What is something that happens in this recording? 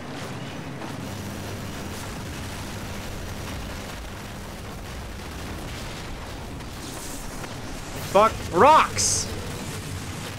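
A gatling gun fires in rapid bursts.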